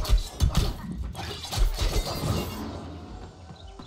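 Heavy blasts thump and crackle in a fight.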